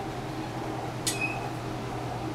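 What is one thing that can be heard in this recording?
A parrot gives a short chirp.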